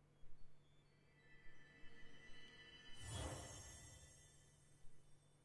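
A magical burst whooshes and shimmers with chiming tones.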